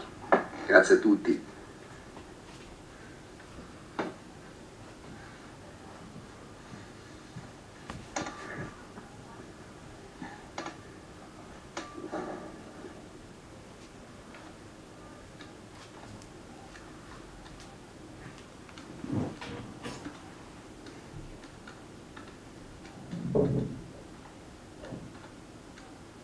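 A man speaks through an online call, heard faintly from a computer.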